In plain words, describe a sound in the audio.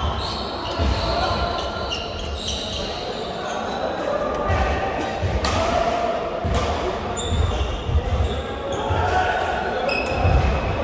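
Shoes squeak sharply on a hard floor in a large echoing hall.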